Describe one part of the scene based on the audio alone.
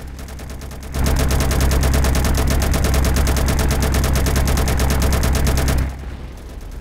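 Loud gunfire rattles rapidly.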